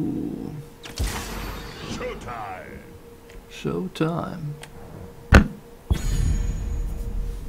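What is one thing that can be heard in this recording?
A game chimes and whooshes as a character is picked.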